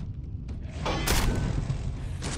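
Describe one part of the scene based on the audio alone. An energy gun fires a crackling blast.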